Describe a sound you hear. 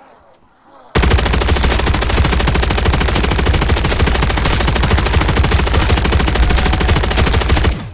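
A heavy machine gun fires in a long, rapid, unbroken burst.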